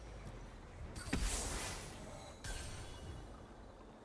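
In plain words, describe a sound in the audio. A game plays a burst of magical whooshing sound effects.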